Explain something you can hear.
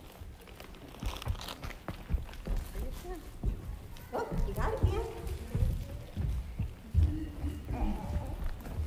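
Footsteps thump on wooden steps.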